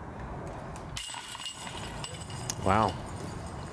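A disc golf disc strikes the metal chains of a basket and they jangle.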